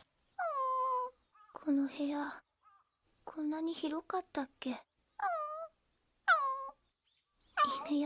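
A puppy whimpers in short high whines.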